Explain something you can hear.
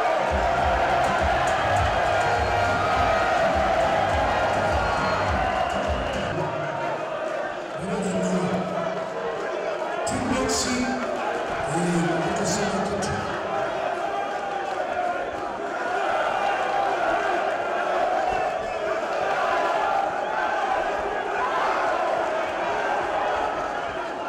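A crowd cheers and murmurs steadily in a large echoing hall.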